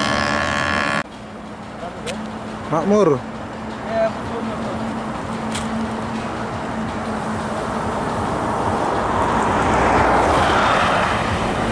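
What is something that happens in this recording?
Heavy trucks and buses rumble along a busy road.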